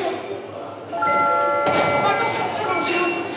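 A train's door warning sounds in steady high tones.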